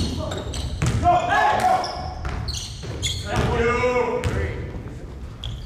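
Voices of young men call out in a large echoing gym.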